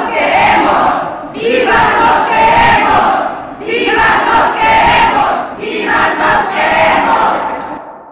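A large crowd chants loudly in rhythmic bursts in an echoing hall.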